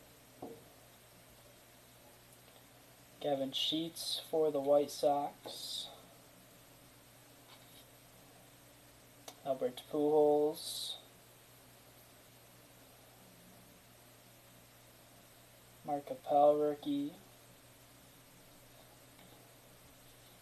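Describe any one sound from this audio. Trading cards slide and rustle softly as they are flipped from one side of a stack to the other.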